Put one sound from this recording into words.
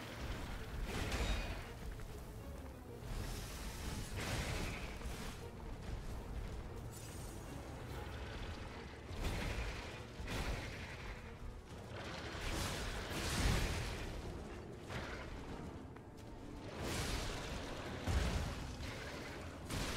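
Metal weapons clash and strike with heavy impacts.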